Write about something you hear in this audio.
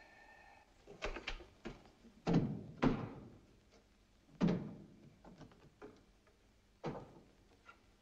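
Small objects clatter and knock on a table.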